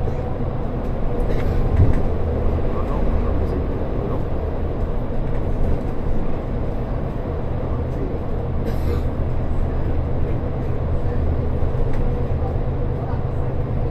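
Passing cars' tyres roar on the road.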